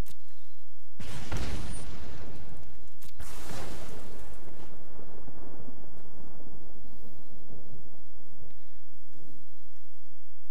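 A digital card game plays a whooshing, rumbling spell effect that slowly fades.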